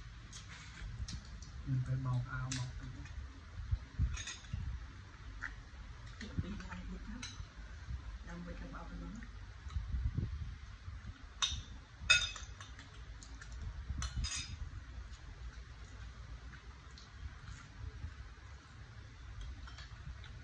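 Cutlery clinks and scrapes against plates.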